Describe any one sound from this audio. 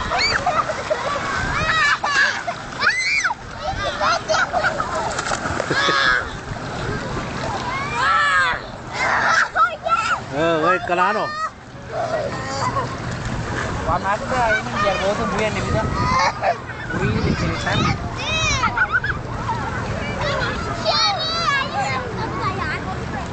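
Children shout and squeal with excitement nearby.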